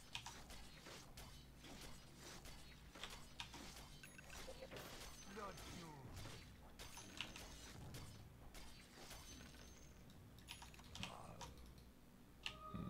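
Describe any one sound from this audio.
Sharp game combat sounds clash and thud repeatedly.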